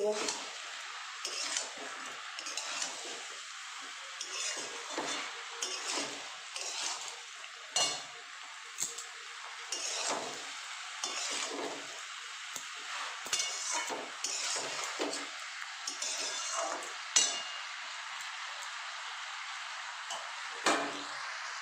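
A metal spatula scrapes and clatters against a metal wok while stirring vegetables.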